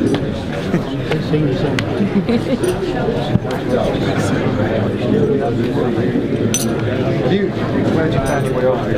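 A crowd of men and women chat and murmur nearby in a room.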